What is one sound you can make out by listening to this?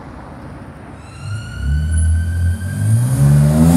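A car engine revs up sharply, rising in pitch.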